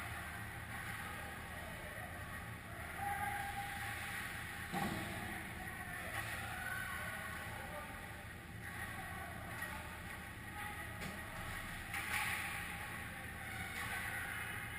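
Skates scrape across ice in a large echoing hall.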